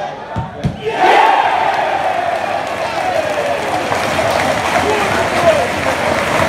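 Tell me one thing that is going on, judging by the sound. A stadium crowd roars suddenly and loudly.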